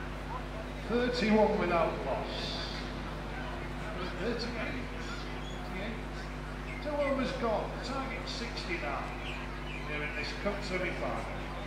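Men call out to each other in the distance outdoors.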